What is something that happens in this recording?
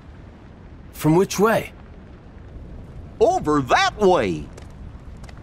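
A man with a goofy, cartoonish voice speaks with animation.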